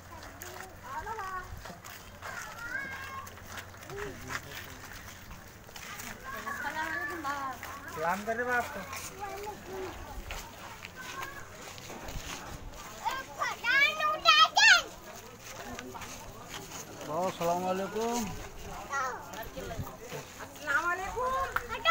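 Men talk and call out nearby outdoors.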